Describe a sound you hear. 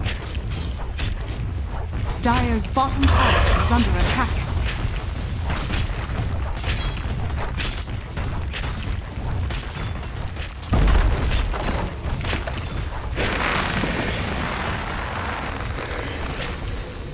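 Game weapons clash and spells crackle in a busy fight.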